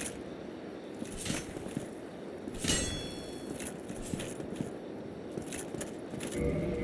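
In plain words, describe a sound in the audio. Metal armour clanks and footsteps thud on stone.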